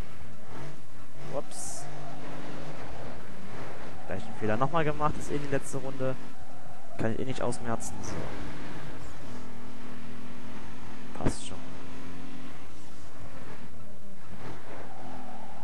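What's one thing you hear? Tyres screech as a car slides around bends.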